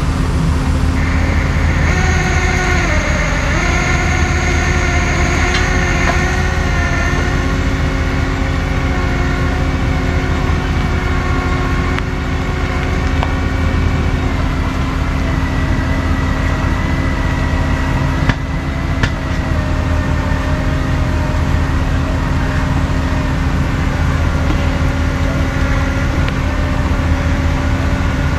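A truck's engine rumbles steadily as it creeps slowly along.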